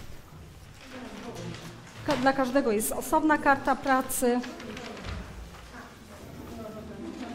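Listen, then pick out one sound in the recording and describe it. Students chatter quietly in the background.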